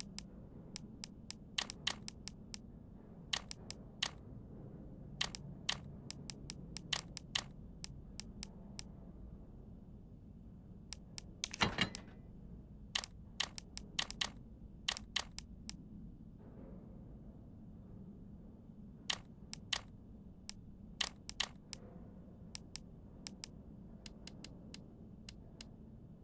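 Short electronic menu clicks tick as items are selected and moved.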